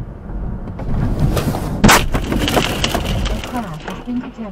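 A car slams into another car with a loud crunching bang.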